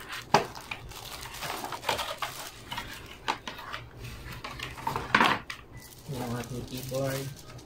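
Cardboard and foam packing rustle and knock as a box is unpacked.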